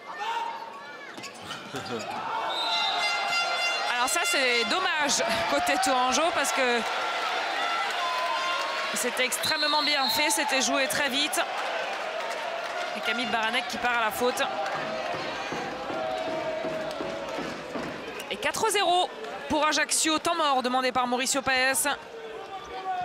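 A large crowd cheers and claps in an echoing hall.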